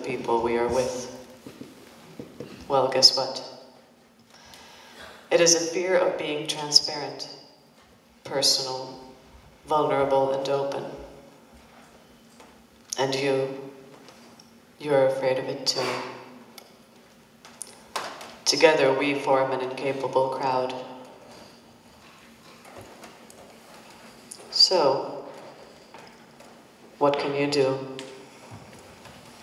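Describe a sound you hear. Young women sing together in short, clear phrases with pauses between them, in an echoing hall.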